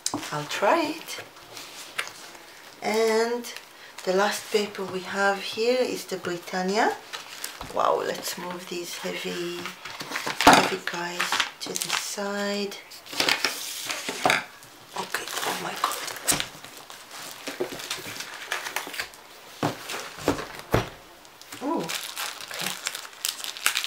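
Stiff paper sheets rustle and scrape as they are handled close by.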